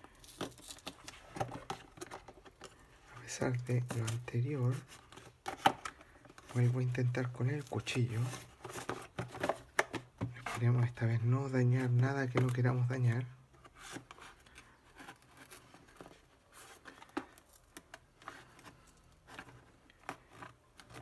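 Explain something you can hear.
Hands handle and shift a cardboard box.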